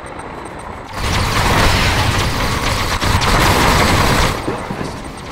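Laser weapons fire with a loud buzzing zap.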